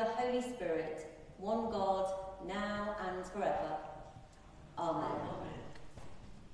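A choir of men and women sings together, echoing in a large hall.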